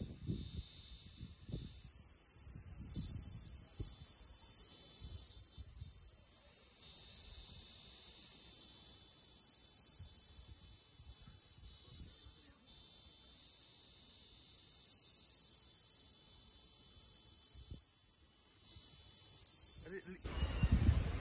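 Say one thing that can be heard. A cicada buzzes with a steady, shrill drone close by.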